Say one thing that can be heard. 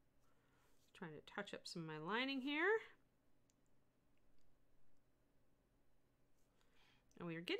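An older woman speaks calmly and close to a microphone.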